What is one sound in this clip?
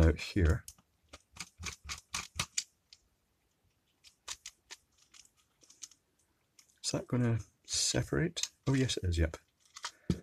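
Small plastic parts click and snap as they are handled.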